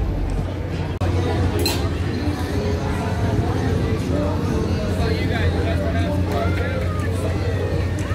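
A crowd chatters in the open air.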